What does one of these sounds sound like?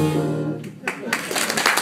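A jazz band plays a final note.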